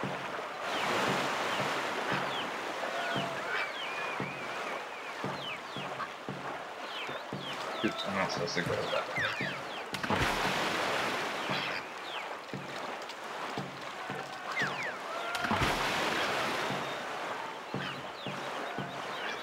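Water rushes and sprays around a fast-moving canoe.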